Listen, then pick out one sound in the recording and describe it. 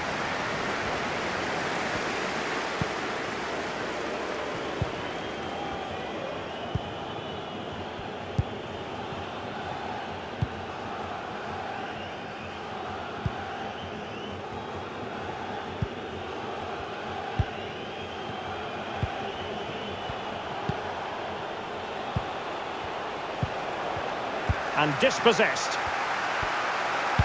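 A large stadium crowd murmurs and chants steadily in the distance.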